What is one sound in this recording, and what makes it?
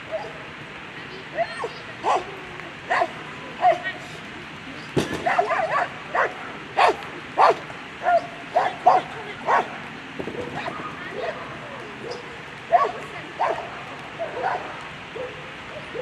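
A woman calls out short, sharp commands outdoors.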